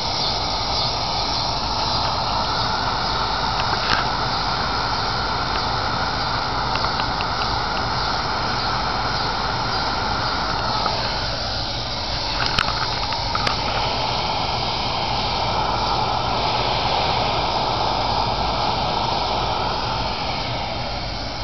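A pressurized liquid-fuel lantern roars as it burns.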